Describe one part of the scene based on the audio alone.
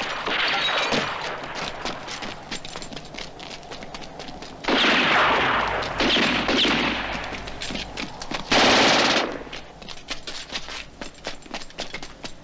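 Rifles fire in rapid bursts of gunshots.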